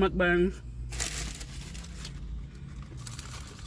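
A paper bag rustles close by.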